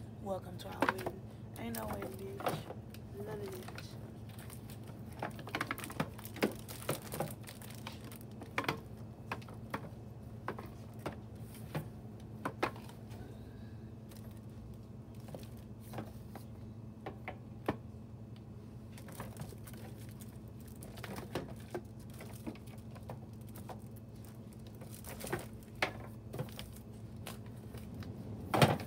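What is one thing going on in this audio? Plastic packages clatter and rustle as they are moved about.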